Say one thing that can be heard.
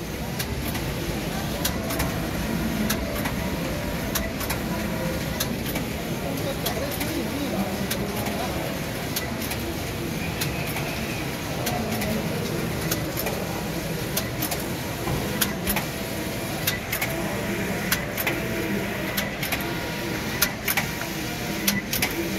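A knitting machine clatters and clicks steadily.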